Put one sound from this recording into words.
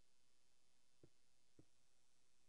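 A stone block cracks and breaks apart.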